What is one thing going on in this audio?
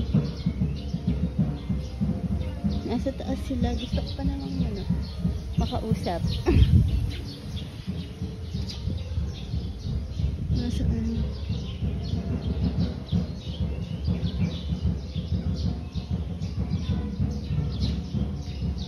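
Birds chirp and call nearby.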